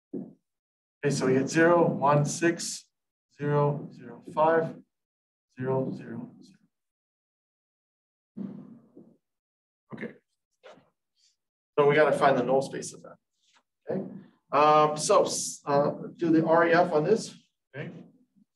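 A man speaks calmly, explaining in a steady voice.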